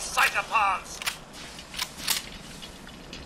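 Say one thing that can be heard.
A rifle's metal parts click sharply as the rifle is reloaded.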